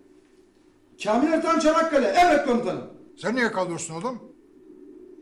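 An older man speaks sternly and forcefully.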